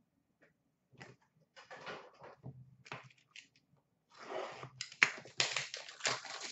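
Trading cards rustle and tap as hands sort through them.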